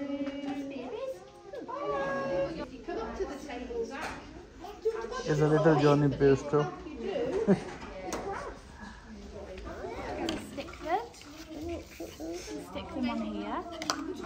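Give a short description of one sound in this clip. A woman talks warmly and calmly to small children nearby.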